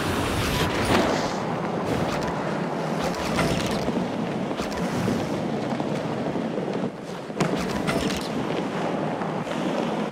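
Skateboard wheels roll and rumble over a road and wooden ramps.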